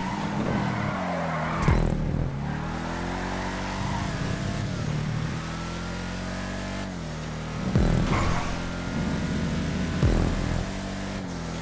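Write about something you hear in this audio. Tyres screech as a car skids around a bend.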